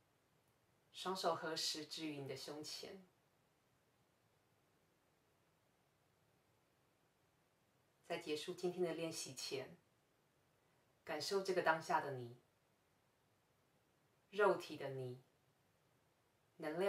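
A young woman speaks calmly and softly, close by, with pauses between phrases.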